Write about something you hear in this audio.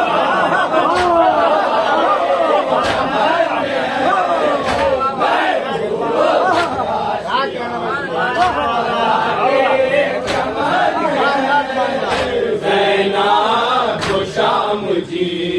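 A crowd of men chants loudly together in rhythm.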